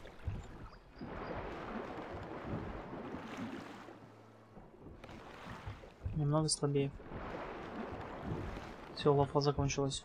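Waves wash and splash softly.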